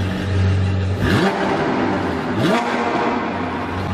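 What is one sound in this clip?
A sports car engine revs loudly.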